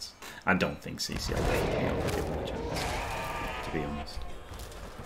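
Game sound effects crash and roar as players clash.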